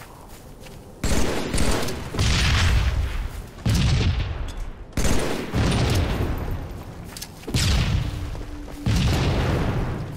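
Rifle shots ring out in loud, booming bursts.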